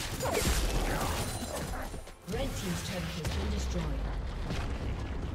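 Magic spells crackle and burst in a fight.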